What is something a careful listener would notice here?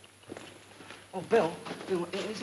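A young man exclaims loudly in an echoing space.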